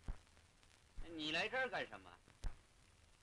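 A young man speaks with a lilting, sing-song voice.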